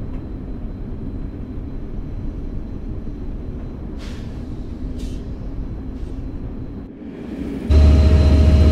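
A train carriage rumbles steadily on the tracks.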